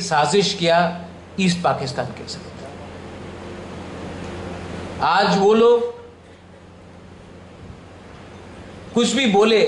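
A man speaks with emphasis into a microphone, with long pauses.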